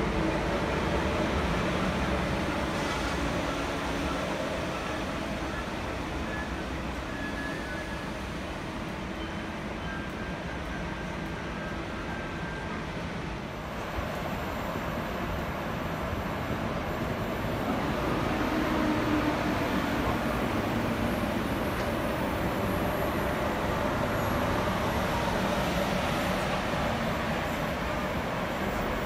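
A high-speed train rushes past close by with a loud steady roar.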